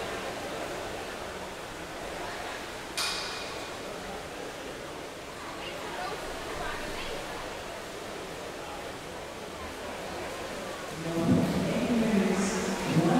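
Water churns and burbles, muffled as if heard underwater.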